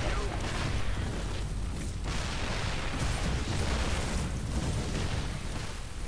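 Gunfire and explosions rattle in a distant battle.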